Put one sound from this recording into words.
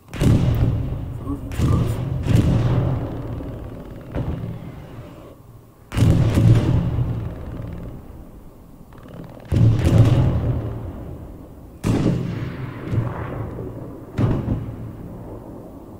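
Rifle shots boom and echo again and again.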